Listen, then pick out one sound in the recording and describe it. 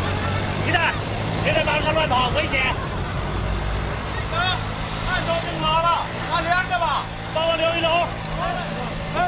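A man calls out loudly.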